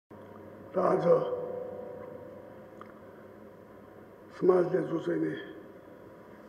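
An elderly man speaks calmly and briefly into a microphone.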